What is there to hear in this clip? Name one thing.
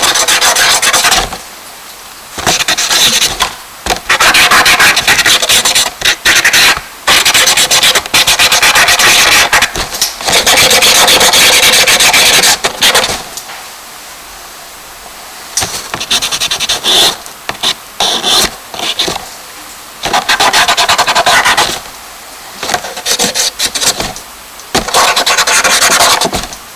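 Fingers rub and smudge charcoal across paper in short, scratchy bursts.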